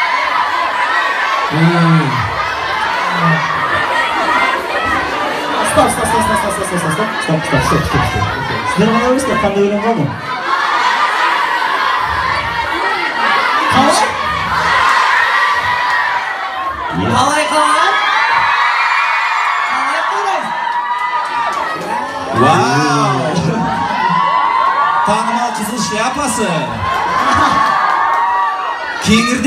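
A crowd of young women screams and cheers loudly.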